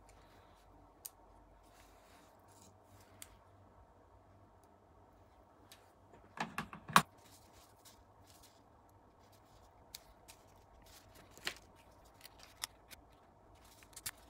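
Small metal parts click and tap on a rubber mat.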